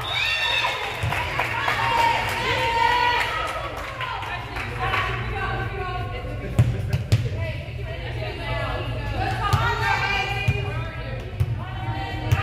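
Girls and young women shout and cheer in a large echoing gym.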